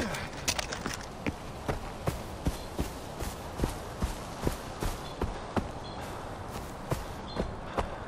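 Footsteps crunch steadily over grass and gravel.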